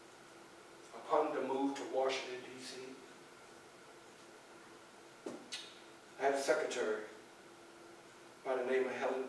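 An elderly man speaks slowly and dramatically in a quiet room.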